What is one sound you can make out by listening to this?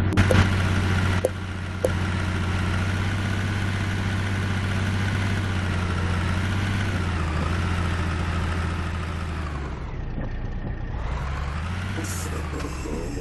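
A truck's diesel engine rumbles steadily, rising and falling as it revs.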